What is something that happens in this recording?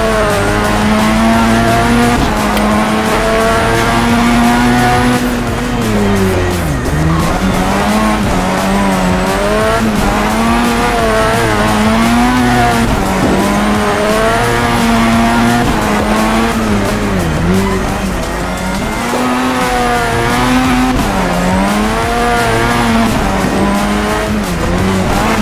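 A loud car engine revs high and drops repeatedly as gears shift.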